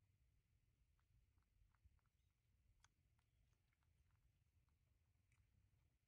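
A small monkey chews and smacks softly on food.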